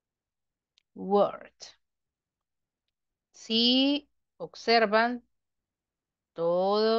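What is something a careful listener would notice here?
A woman speaks clearly into a microphone, in short phrases with pauses.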